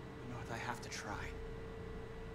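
A young man speaks quietly and earnestly.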